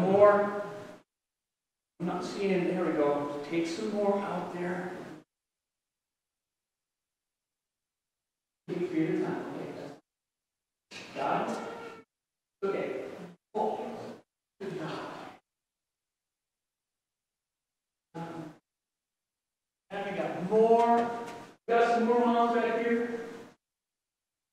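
An elderly man speaks calmly in a large echoing room, with pauses.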